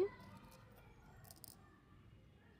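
Small beads rattle in a metal bowl.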